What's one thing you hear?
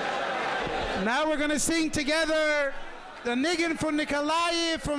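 A man sings loudly close by.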